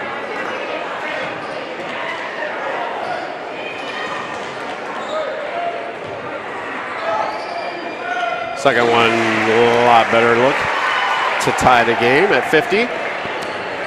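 A large crowd murmurs and chatters in a big echoing gym.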